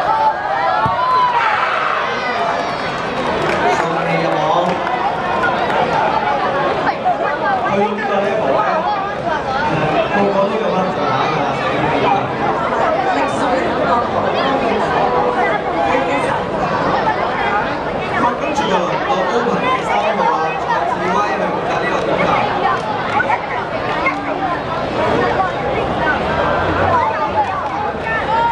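A crowd of young men chatters and shouts loudly in a large echoing hall.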